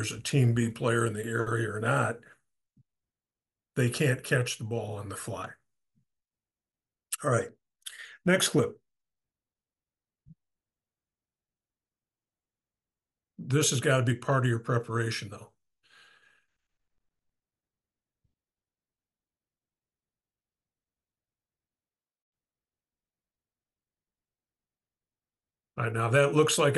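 A middle-aged man talks calmly into a microphone, in bursts with long silences between them.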